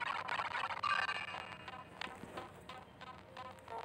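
A bright electronic chime rings out.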